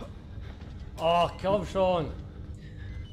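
A young man speaks briefly into a close microphone with a drawn-out exclamation.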